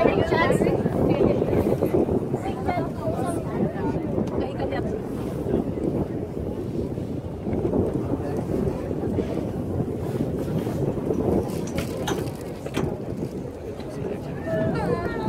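Wind blows hard past the microphone.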